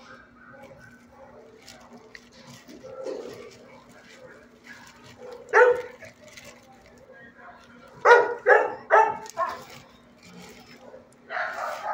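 A dog crunches dry kibble.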